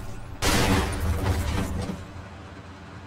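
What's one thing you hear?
A car engine revs loudly.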